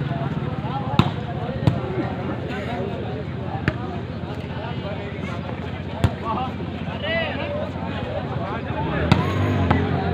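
A volleyball is struck sharply by hand.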